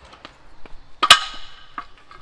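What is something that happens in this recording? A scooter's kickstand snaps up with a sharp metallic clack.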